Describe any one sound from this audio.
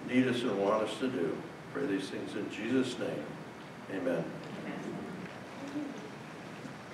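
A man speaks calmly into a microphone in an echoing hall.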